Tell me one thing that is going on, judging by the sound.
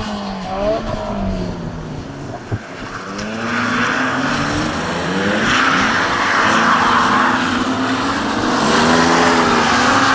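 Car engines rev loudly and rise and fall in pitch.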